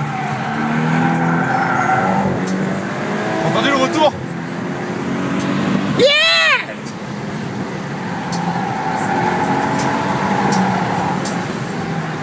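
A turbocharged four-cylinder sports hatchback engine accelerates through the gears, heard from inside the car.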